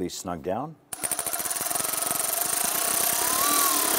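A cordless power ratchet whirs steadily.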